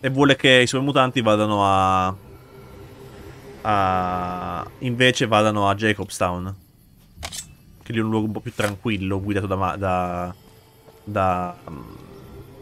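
A young man talks animatedly and close to a microphone.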